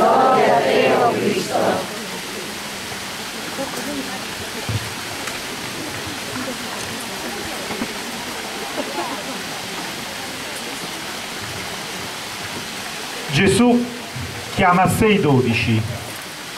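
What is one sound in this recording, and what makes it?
A man speaks calmly through a microphone and loudspeaker outdoors.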